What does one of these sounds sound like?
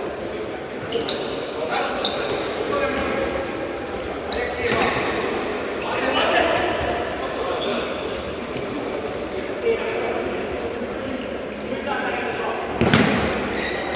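A futsal ball is kicked sharply across an indoor court.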